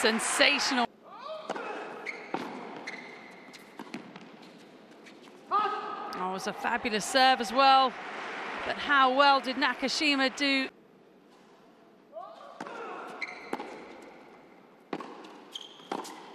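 A tennis ball is hit back and forth with sharp pops, echoing in a large hall.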